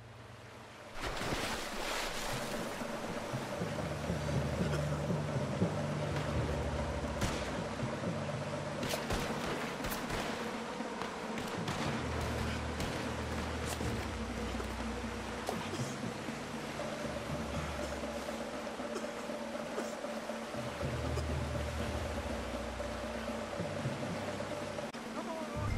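A river rushes and churns steadily.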